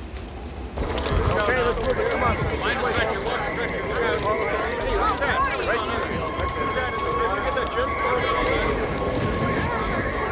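A crowd of men and women talks and shouts at once outdoors, heard from a distance.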